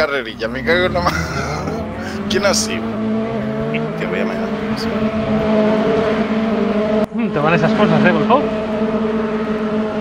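Tyres skid and scrabble over gravel.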